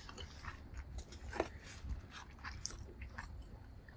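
A metal spoon clinks and scrapes against a plastic dish.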